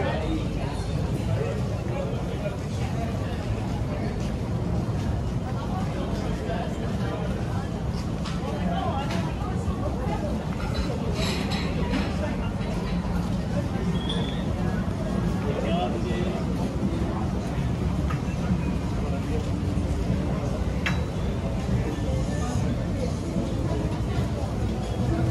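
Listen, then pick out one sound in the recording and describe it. Footsteps shuffle on pavement nearby.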